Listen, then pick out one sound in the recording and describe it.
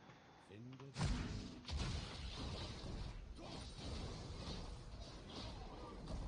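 Magic spells whoosh and blows strike in a video game fight.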